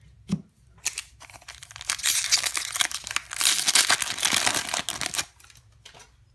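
A foil wrapper crinkles and tears loudly.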